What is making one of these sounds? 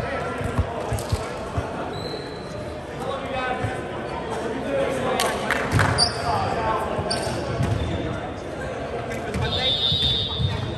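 Volleyballs thump against hands and the floor in a large echoing hall.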